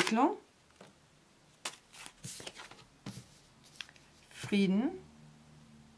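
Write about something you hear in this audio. Playing cards tap and slide softly on a table.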